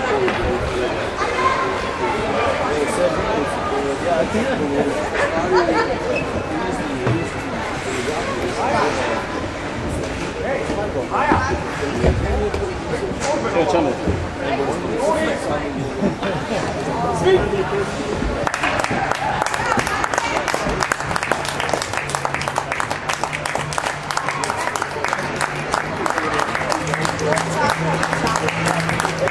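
Children chatter and call out in a large echoing hall.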